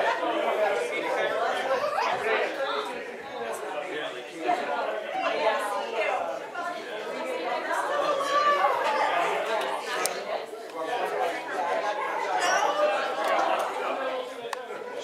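A crowd of men and women chat and greet one another in a room that echoes a little.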